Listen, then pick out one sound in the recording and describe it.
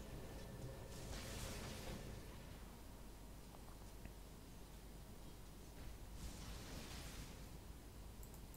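Magic spells whoosh and crackle faintly in a battle.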